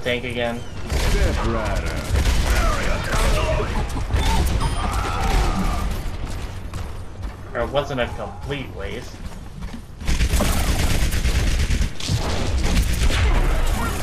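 Guns fire in rapid bursts with heavy thuds.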